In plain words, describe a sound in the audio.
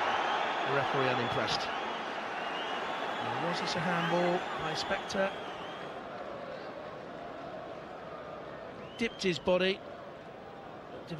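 A large crowd roars and murmurs in a stadium, loud at first and then gradually quieter.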